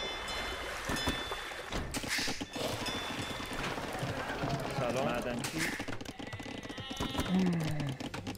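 Short game sound effects chime and click.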